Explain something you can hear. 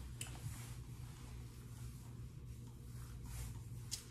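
A comb brushes softly through a dog's fur.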